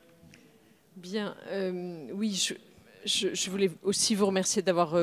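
A woman speaks with animation into a microphone in a large echoing hall.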